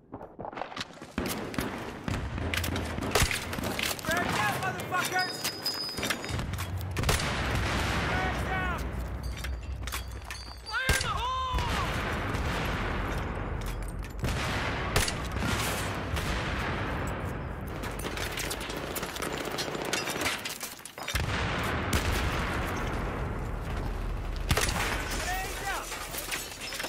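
A rifle fires bursts of loud gunshots nearby.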